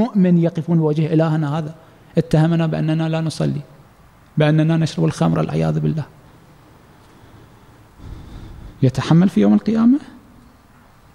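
A man speaks forcefully into a microphone in an echoing hall.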